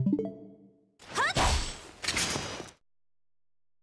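A bright whooshing sound effect swells and cuts off.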